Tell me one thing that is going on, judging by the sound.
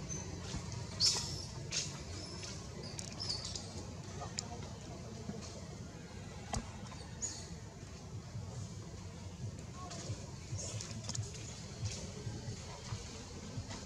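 Leaves rustle as monkeys move through plants.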